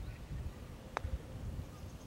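A golf club taps a ball with a light click.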